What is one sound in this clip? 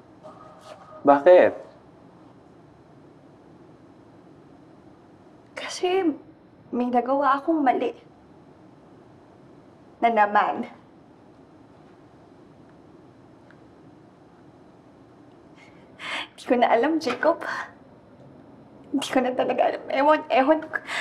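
A young woman speaks close by in a strained, tearful voice.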